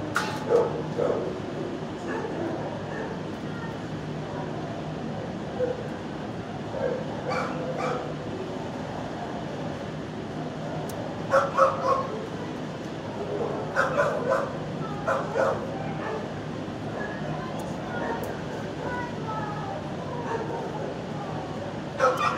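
A dog sniffs at the floor up close.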